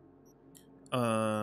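A man speaks loudly and with animation, close to a microphone.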